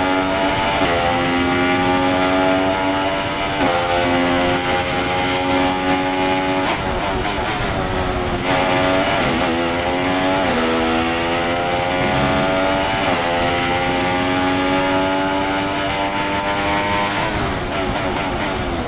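A racing car engine screams at high revs, rising through each gear and dropping sharply at every shift.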